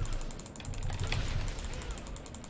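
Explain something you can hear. A magic spell bursts with a sharp whoosh.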